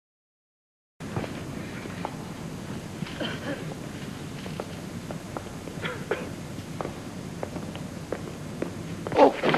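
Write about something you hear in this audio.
Footsteps click on a stone floor in a large echoing hall.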